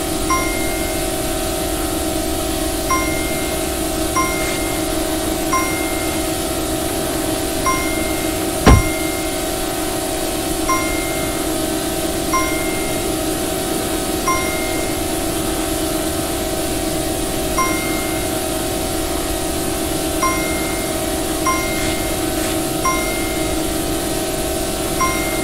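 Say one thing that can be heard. A small drone's motors whine steadily at high speed.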